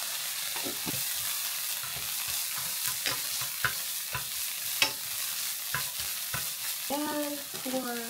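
Chopsticks scrape and tap against a frying pan.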